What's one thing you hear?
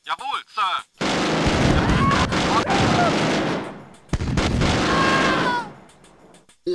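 Gunfire crackles in a battle.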